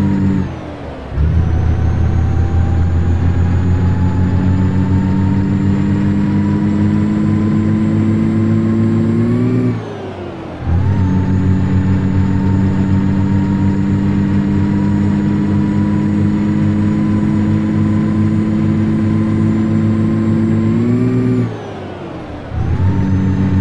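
A truck engine drops briefly in sound as the gears change.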